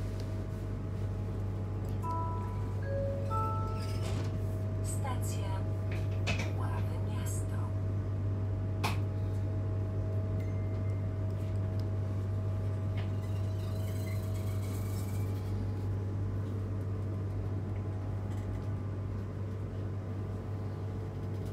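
Train wheels click and clatter over the rails.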